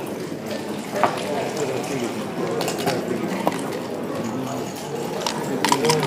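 Wooden checkers click as they are moved on a board.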